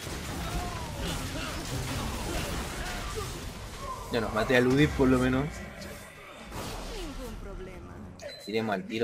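Magic blasts and hits crackle and whoosh in a fast fight.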